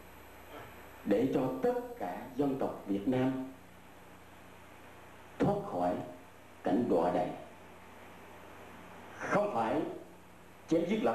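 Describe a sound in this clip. An elderly man speaks calmly in short phrases, with pauses between them.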